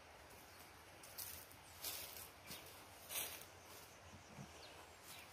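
Footsteps rustle through dry grass and leaves outdoors.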